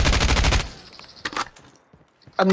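A rifle's parts click and rattle as it is handled.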